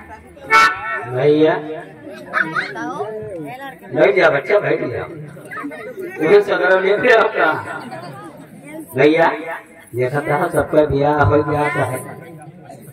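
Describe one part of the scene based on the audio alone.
A man speaks animatedly into a microphone over loudspeakers.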